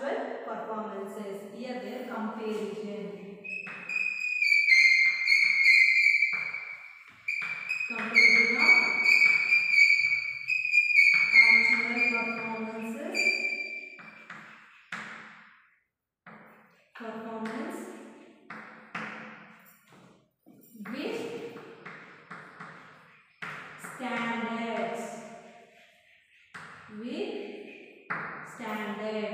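A young woman speaks calmly, close by, as if teaching.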